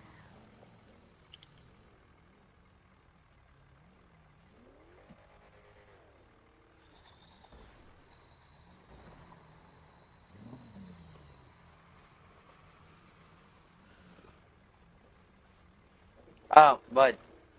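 A truck engine idles and revs low.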